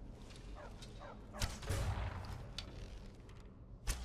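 A bowstring twangs as an arrow is loosed.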